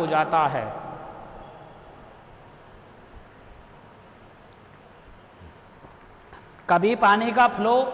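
A man lectures calmly into a microphone, with pauses.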